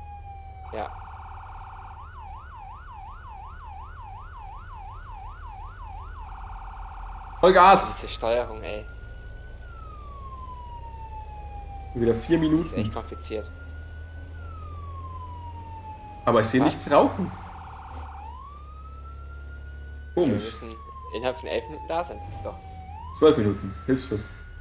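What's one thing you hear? A fire engine's engine rumbles low and steady.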